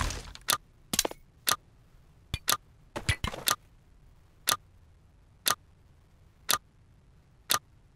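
A game countdown timer beeps once every second.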